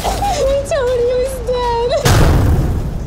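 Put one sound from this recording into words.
A young woman sobs and speaks in a trembling voice.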